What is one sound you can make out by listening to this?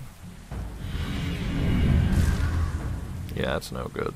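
A magic spell crackles and shimmers with a rushing whoosh.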